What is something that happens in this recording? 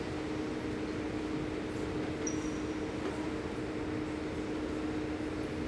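A crowd of children and adults murmurs in a large echoing hall.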